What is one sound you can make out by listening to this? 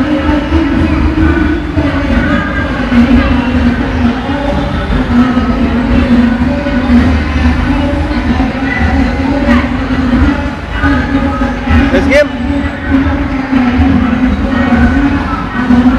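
A coin-operated children's ride plays a tinny, looping tune through a small loudspeaker.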